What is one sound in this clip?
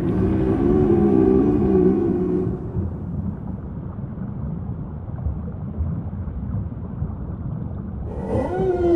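Water laps gently nearby.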